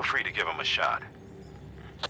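A man speaks calmly over a radio.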